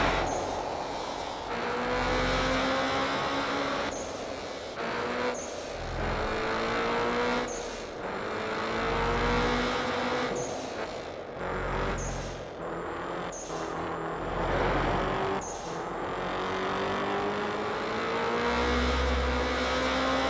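A car engine roars at high revs, rising in pitch through each gear and dropping briefly at each shift.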